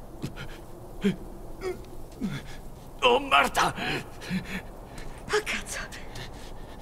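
A man groans and mutters weakly in pain, close by.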